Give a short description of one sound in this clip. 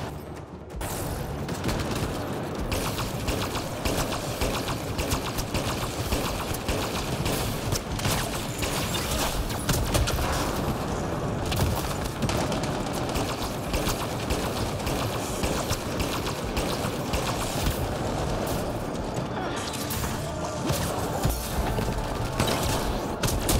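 Rifle fire crackles in rapid bursts.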